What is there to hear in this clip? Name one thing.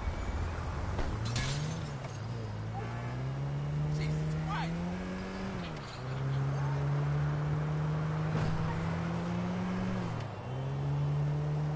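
A car engine revs, rising and falling in pitch as it speeds up.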